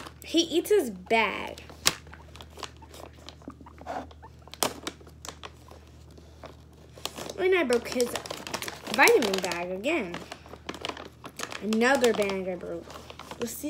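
A plastic snack bag crinkles.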